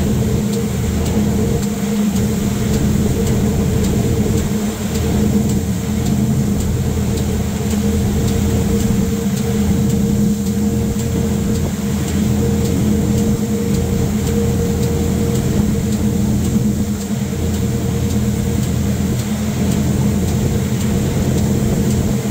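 Heavy rain patters against a train window.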